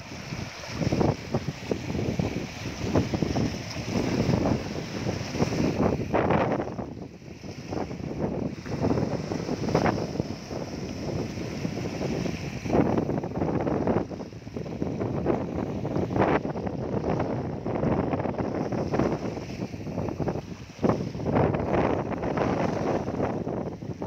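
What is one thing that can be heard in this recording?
Small waves splash and wash over rocks close by.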